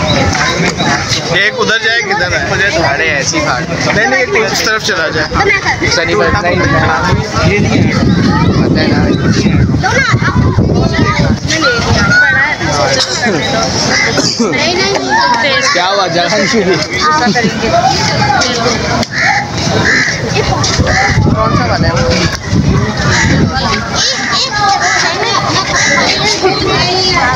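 A crowd of men, women and children chatter all around, close by, outdoors.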